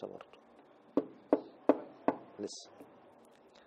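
Fingers tap on a table a few times.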